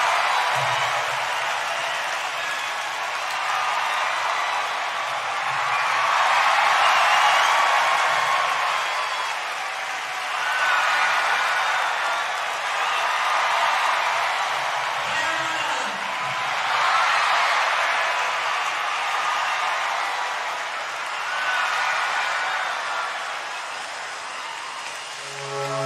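A large crowd cheers and screams loudly in a big echoing arena.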